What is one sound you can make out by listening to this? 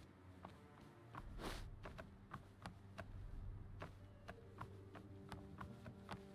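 Quick footsteps patter on wooden boards.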